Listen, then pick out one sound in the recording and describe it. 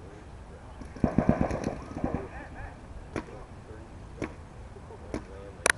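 Paintball markers fire in quick bursts of sharp pops outdoors.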